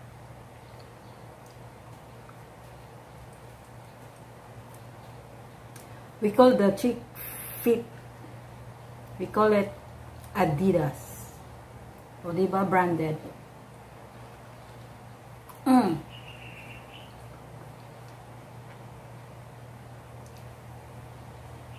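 A woman chews food.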